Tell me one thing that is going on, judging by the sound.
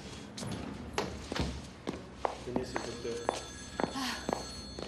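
Footsteps tap on a hard floor in a hallway.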